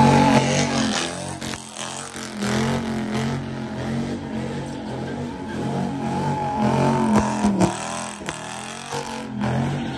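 Tyres screech on asphalt as a car spins.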